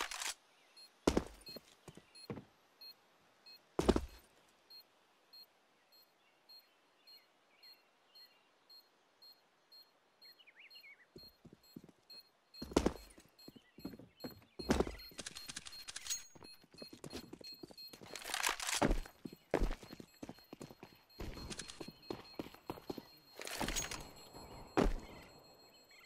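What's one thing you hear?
Sharp gunshots ring out now and then.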